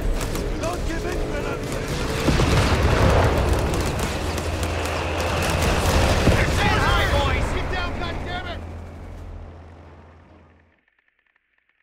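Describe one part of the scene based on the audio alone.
Gunfire crackles in a loud battle.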